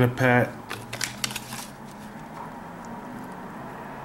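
A plastic wrapper crinkles in someone's hands.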